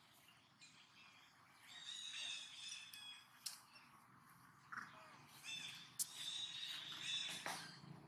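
A small monkey chews and nibbles food close by.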